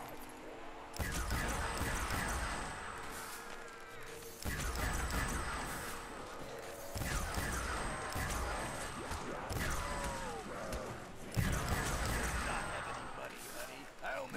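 A ray gun fires bursts of buzzing energy blasts.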